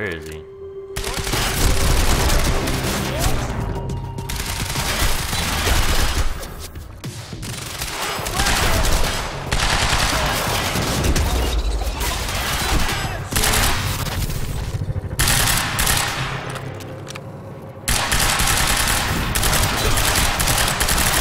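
Rapid rifle gunfire rattles loudly.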